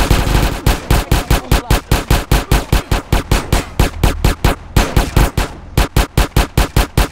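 Pistols fire in rapid bursts of loud shots.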